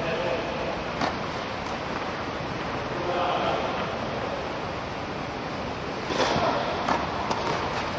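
A tennis racket strikes a ball with a sharp pop in an echoing hall.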